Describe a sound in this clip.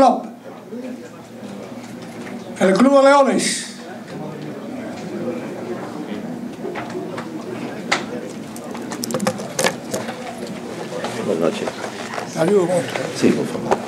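An elderly man speaks into a microphone, heard through loudspeakers in a room.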